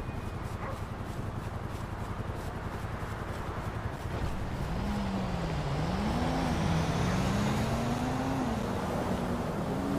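Footsteps run over grass and pavement.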